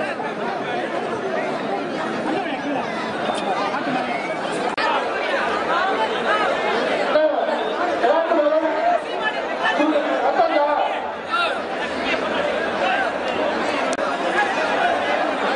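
A large outdoor crowd cheers and shouts.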